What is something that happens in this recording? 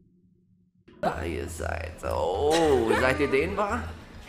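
A young woman speaks with animation, heard through a loudspeaker.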